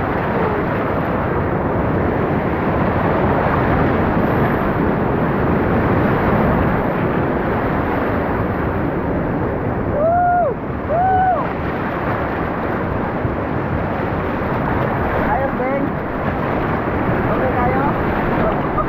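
River rapids rush and churn loudly all around.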